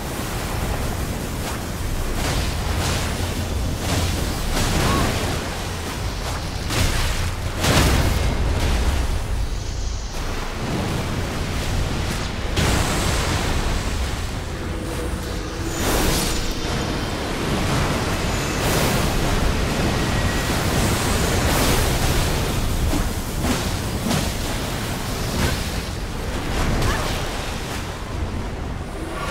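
Heavy blades clash and strike with loud impacts.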